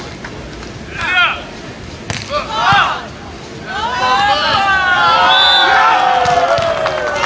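A volleyball is struck with a hand several times.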